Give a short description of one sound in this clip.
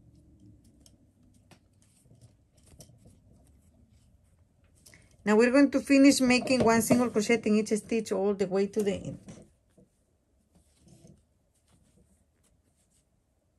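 Yarn rustles softly as a crochet hook pulls it through stitches.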